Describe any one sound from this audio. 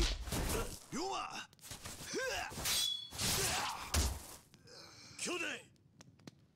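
Swords clash with sharp metallic rings.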